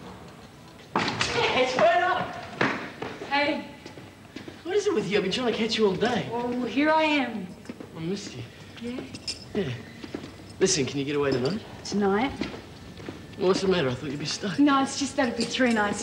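A young man talks softly nearby.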